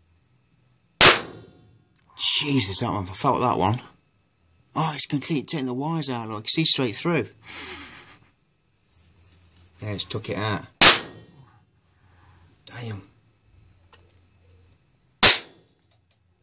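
Sharp electric sparks crack and snap loudly, a few times.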